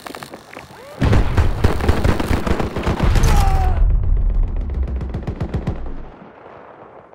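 A nearby explosion booms and rumbles deeply.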